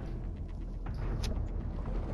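Water bubbles and swirls around spinning propellers.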